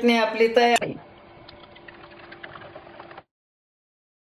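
Thick sauce pours and splatters into a bowl.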